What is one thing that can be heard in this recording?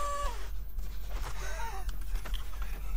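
A man groans in pain close by.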